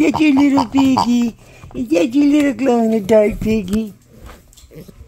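A rubber toy squeaks loudly.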